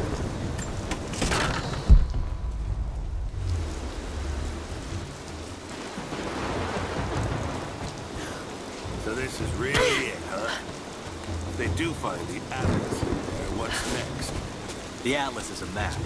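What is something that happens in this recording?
Heavy rain pours down in a storm.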